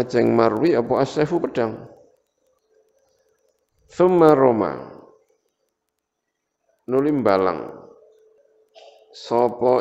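A middle-aged man reads aloud in a chanting voice close to a microphone, with pauses between phrases.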